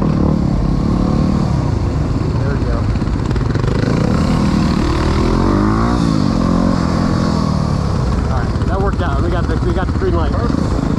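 Dirt bike engines rev and rumble loudly close by.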